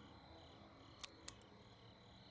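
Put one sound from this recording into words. A lamp switch clicks on.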